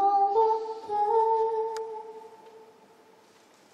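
A piano plays softly and its notes ring out and fade.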